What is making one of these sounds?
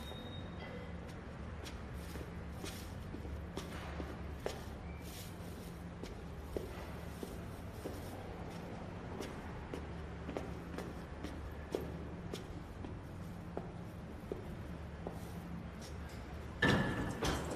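Footsteps climb a stairwell.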